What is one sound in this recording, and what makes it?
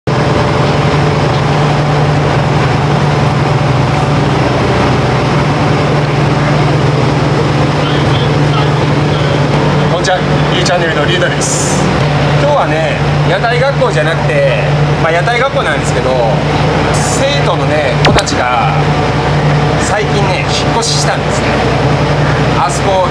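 A boat engine drones steadily throughout.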